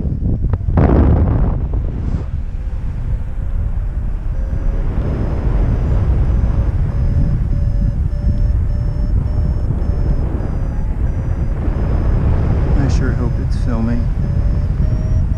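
Strong wind rushes and buffets steadily outdoors.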